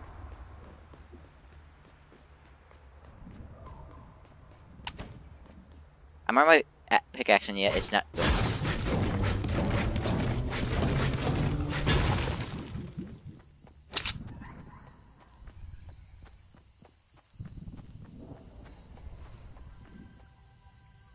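Footsteps patter quickly on hard ground and grass.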